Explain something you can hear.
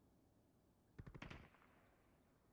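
A rifle clicks and rattles as it is handled.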